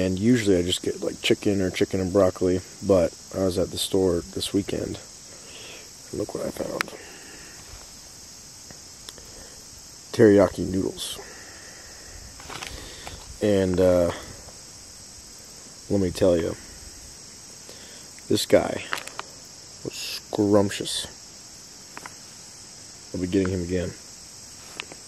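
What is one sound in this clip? A young man talks calmly and casually, close by.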